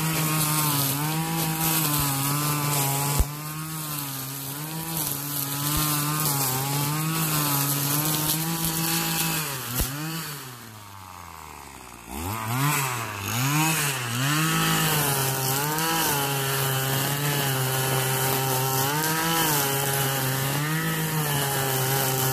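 A string trimmer swishes through tall grass.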